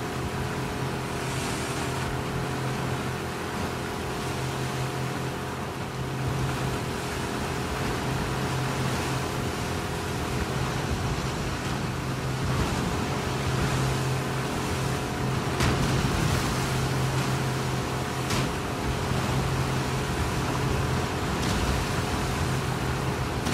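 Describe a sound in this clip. Rough floodwater rushes and churns loudly.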